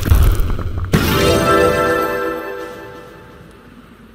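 A cheerful victory jingle plays.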